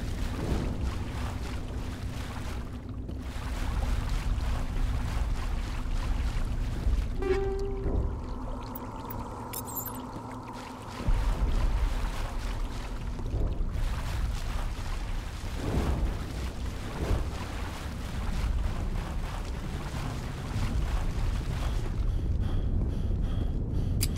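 Heavy armoured footsteps tread through grass and mud.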